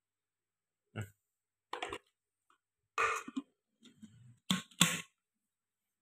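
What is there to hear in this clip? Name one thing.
Plastic blender parts click and clack as they are fitted and taken apart.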